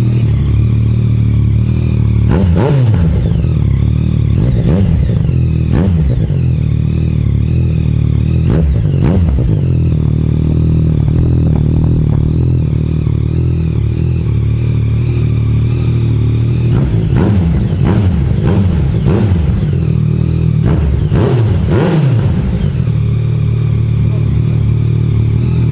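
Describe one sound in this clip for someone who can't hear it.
A motorcycle engine idles with a deep, steady rumble close by.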